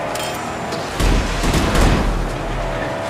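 Metal crashes loudly against metal.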